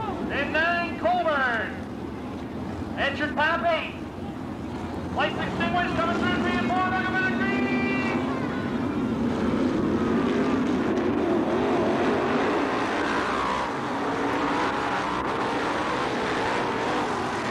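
Race car engines roar and rev as they pass.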